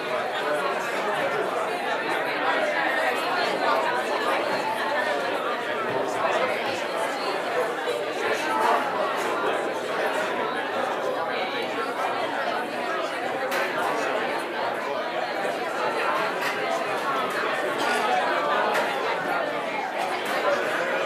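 A crowd of men and women chatter all at once in a room with some echo.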